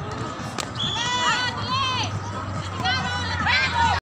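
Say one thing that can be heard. Young women shout loudly in excitement.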